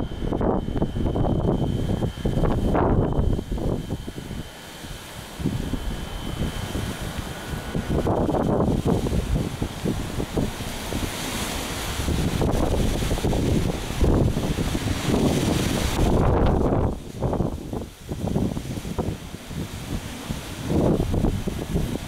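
Wind gusts hard and rumbles across the microphone outdoors.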